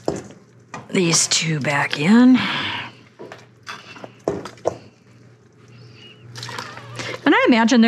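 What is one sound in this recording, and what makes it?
Meat splashes into a pot of broth.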